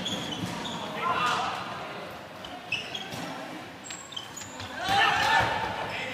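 Players shout to each other across the hall.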